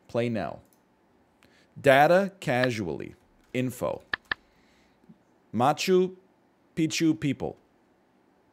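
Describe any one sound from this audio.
A man talks calmly and close into a microphone, in short bursts.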